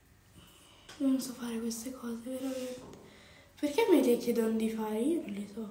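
A young woman talks close by, with animation.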